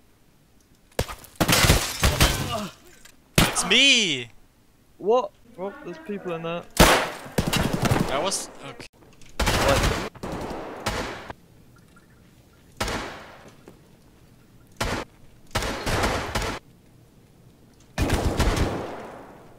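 Gunshots fire in loud bursts that echo through a large hall.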